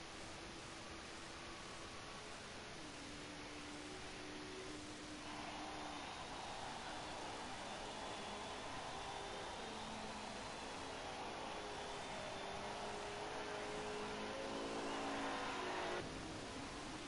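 A race car engine roars and revs up and down through the gears.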